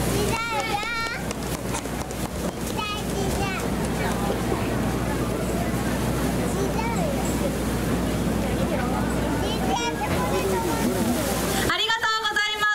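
A crowd of people chatters and calls out in the open air.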